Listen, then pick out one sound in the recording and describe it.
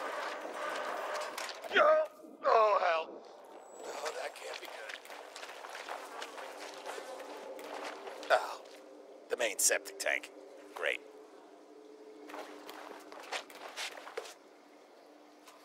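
Footsteps crunch on a littered floor.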